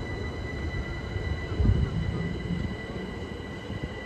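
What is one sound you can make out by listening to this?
A train rumbles into a station outdoors.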